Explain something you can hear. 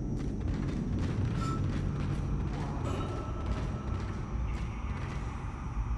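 Heavy metal footsteps clank on a hard floor.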